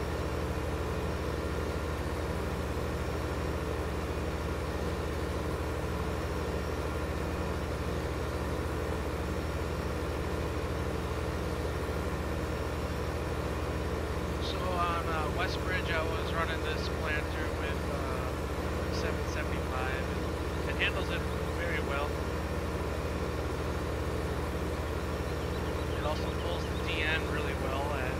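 A tractor engine drones steadily at low pitch.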